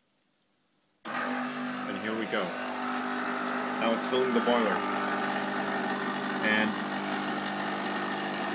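An espresso machine hums loudly.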